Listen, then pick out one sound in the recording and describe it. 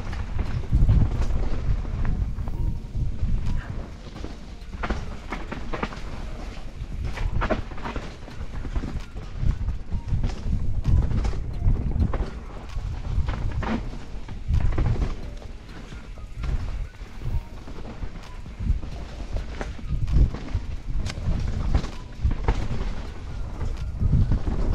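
Mountain bike tyres crunch over a leaf-covered dirt trail.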